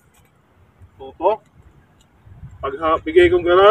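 A man speaks with animation close by, outdoors.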